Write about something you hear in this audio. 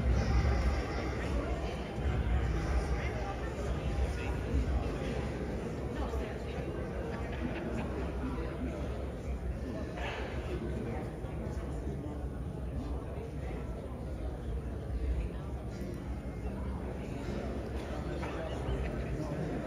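Elderly women talk quietly nearby in a large hall.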